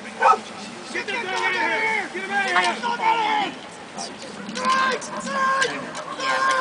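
A man shouts and cheers excitedly.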